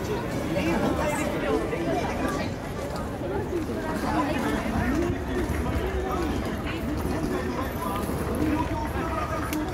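A dense crowd of men and women chatters all around.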